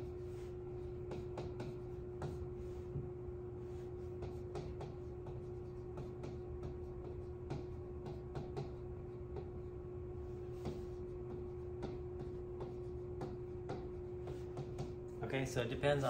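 A marker taps and squeaks softly on a board.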